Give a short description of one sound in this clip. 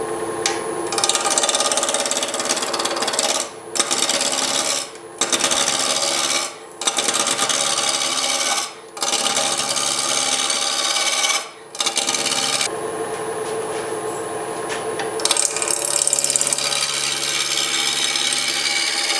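A chisel scrapes and hisses against spinning wood in loud bursts.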